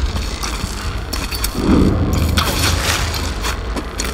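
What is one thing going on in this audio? Electric sparks crackle and buzz.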